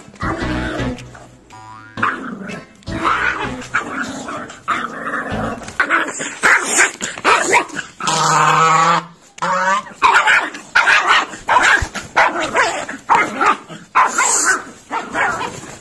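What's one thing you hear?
A goose honks loudly.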